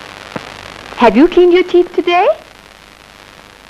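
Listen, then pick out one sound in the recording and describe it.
A woman speaks softly and closely.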